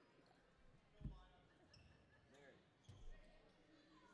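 A basketball thuds on the court floor.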